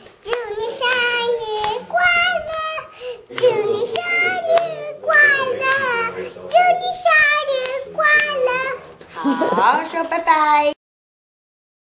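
A young girl sings loudly close by.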